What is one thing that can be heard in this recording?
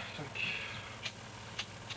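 A young woman talks softly nearby.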